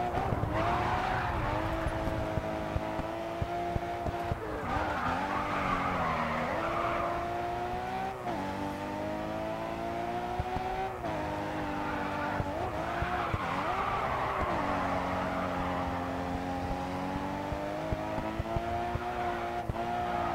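A race car engine roars steadily, rising and falling in pitch as it shifts gears.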